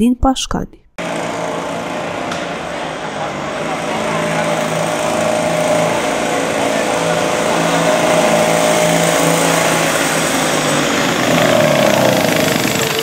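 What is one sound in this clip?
A small go-kart engine drones steadily as a kart drives along.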